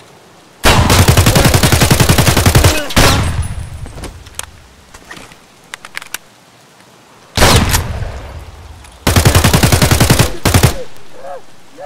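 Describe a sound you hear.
A rifle fires rapid automatic bursts that echo outdoors.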